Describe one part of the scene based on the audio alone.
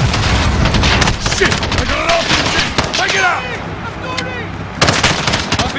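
A magazine clicks out and in as a rifle reloads.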